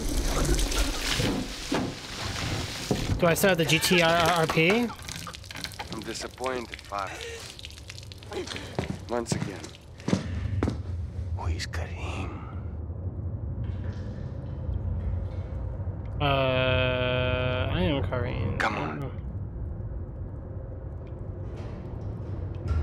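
A man talks into a microphone in a relaxed voice.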